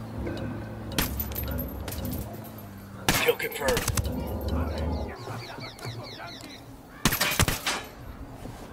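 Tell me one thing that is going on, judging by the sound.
Rifle shots crack in short bursts.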